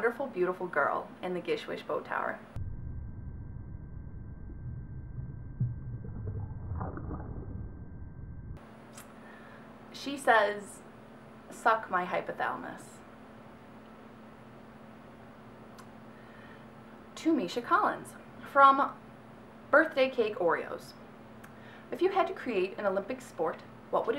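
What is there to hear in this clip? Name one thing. A young woman reads aloud close to a microphone, with animation.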